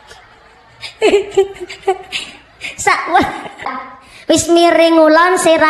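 A young woman sings through a microphone over loudspeakers outdoors.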